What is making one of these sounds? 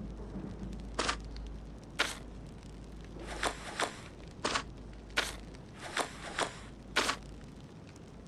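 Puzzle tiles slide and click into place.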